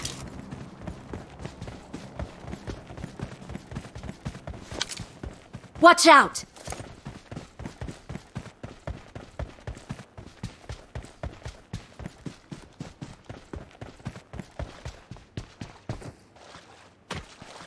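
Quick footsteps run over the ground.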